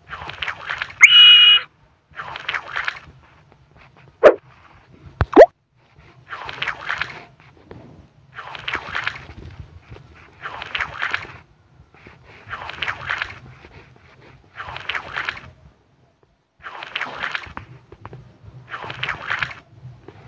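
A screwdriver turns screws with short, repeated grinding bursts.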